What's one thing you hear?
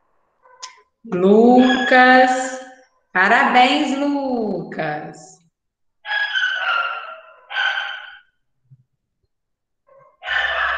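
A young woman speaks with animation, close to the microphone, over an online call.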